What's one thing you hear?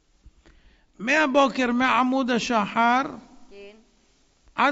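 A middle-aged woman speaks through a handheld microphone.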